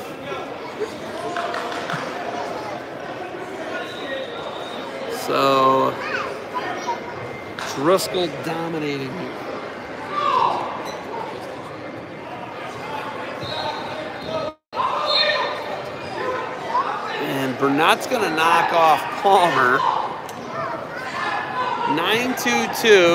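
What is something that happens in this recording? Spectators chatter and shout in a large echoing hall.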